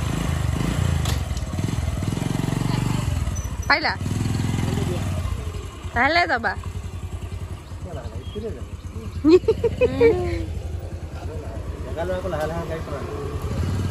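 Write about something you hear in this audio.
A motorcycle engine idles with a steady low throb.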